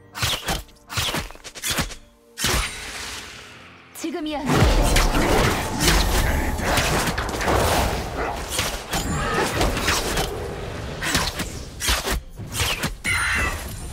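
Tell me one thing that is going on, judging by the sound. Magic blasts crackle and whoosh in quick bursts.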